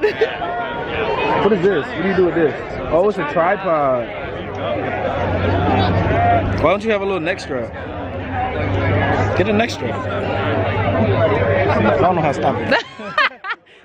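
A crowd chatters outdoors in the background.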